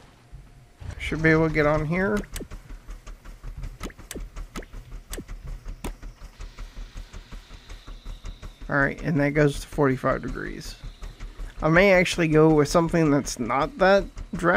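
A small engine putters with a quick, steady beat.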